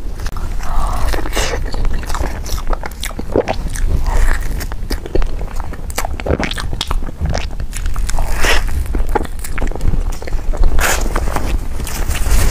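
A young woman chews soft cake wetly and close to a microphone.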